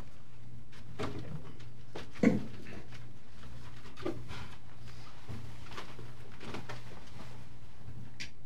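A man speaks softly and far off through a microphone.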